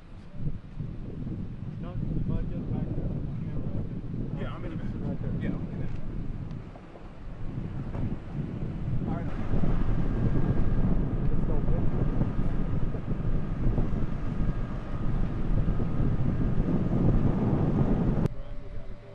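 A flag flaps in the wind.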